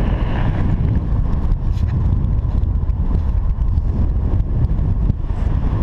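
Fabric straps rustle and flap in the wind.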